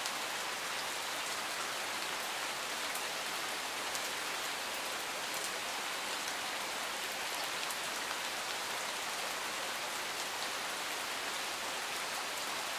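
Steady rain falls and patters softly on leaves and gravel.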